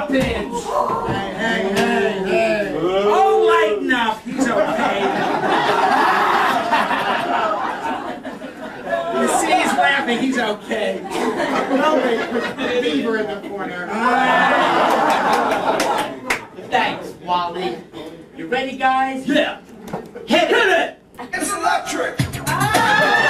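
Several adult performers talk and call out loudly on a stage in a reverberant hall.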